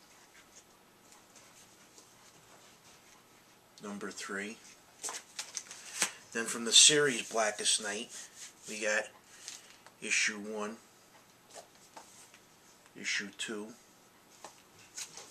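Paper comic books rustle and flap in a man's hands.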